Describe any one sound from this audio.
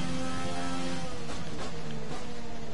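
A racing car engine drops in pitch as the car brakes and shifts down.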